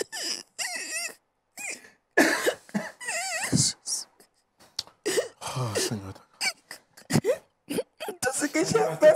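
A woman prays aloud fervently in a trembling, emotional voice, close by.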